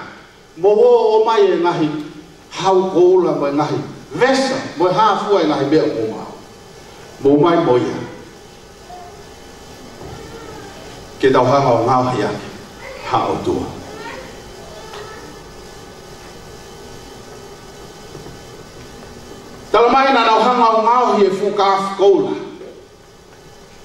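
A man speaks with animation through a microphone, in bursts separated by pauses.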